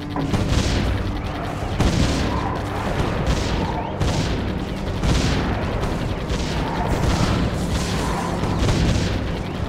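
Turrets fire in rapid bursts of blasts.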